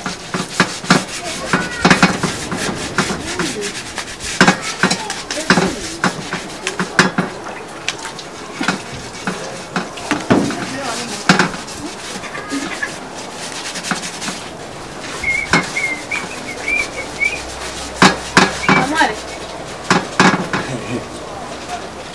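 Metal scrapes and clatters against a metal basin.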